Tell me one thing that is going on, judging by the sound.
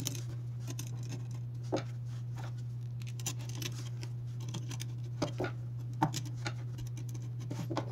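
A screwdriver scrapes and turns a screw.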